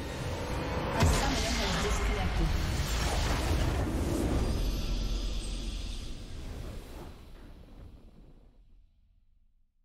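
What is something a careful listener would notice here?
A triumphant fanfare swells and slowly fades.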